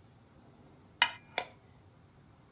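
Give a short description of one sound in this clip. Two short interface clicks sound in quick succession.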